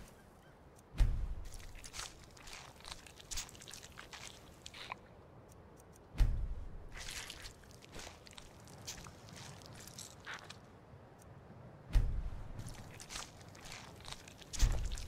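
Heavy thuds sound as an animal is butchered.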